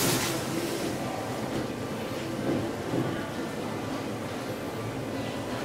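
An elevator door slides shut with a rumble.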